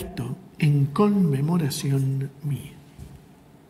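A man sings a short chant through a microphone.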